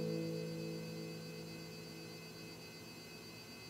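A nylon-string guitar's last chord rings out and slowly fades.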